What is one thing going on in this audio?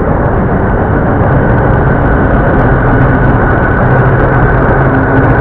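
A train rumbles past at a distance.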